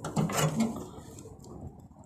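A wood fire crackles softly in a stove.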